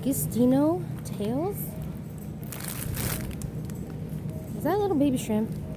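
A plastic bag crinkles and rustles in a hand.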